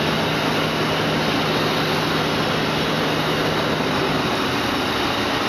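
A printing machine hums and clatters steadily.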